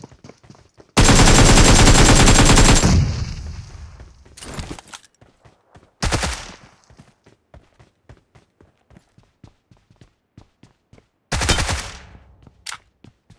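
Rapid gunfire blasts out in loud bursts.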